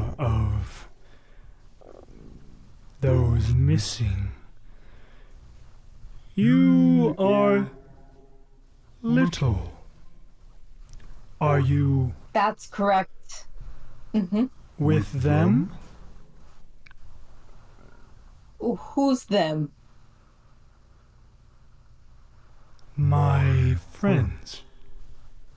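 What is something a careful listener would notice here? A young man speaks with animation into a close microphone, heard over an online call.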